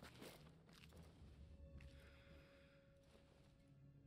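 A man breathes in deeply.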